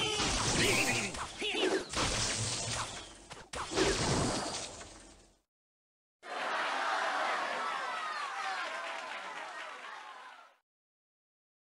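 Cartoonish game sound effects pop and clash.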